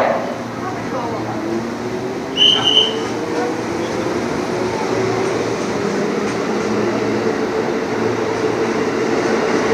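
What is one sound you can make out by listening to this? An electric train pulls away with a rising motor whine.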